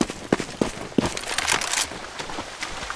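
A rifle is drawn with a short metallic clatter.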